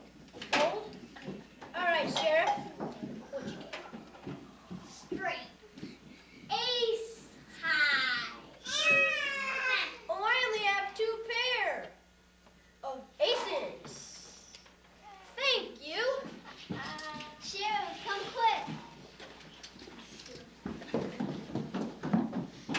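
A boy speaks excitedly, close by.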